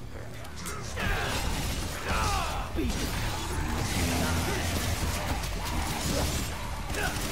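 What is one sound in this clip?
Sword blades slash and clash sharply in a fight.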